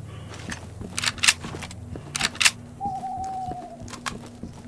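A rifle clacks as it is raised.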